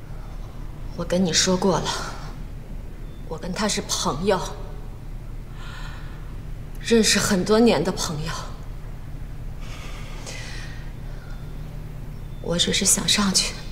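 A woman speaks firmly and with insistence, close by.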